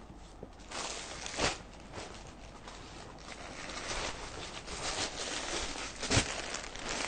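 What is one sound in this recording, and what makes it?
Silky fabric rustles and swishes as it is handled and folded.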